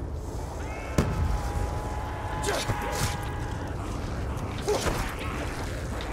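Gunshots ring out in a video game.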